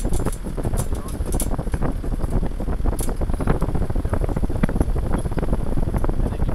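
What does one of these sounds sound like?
Tyres rumble and crunch steadily over a rough dirt track.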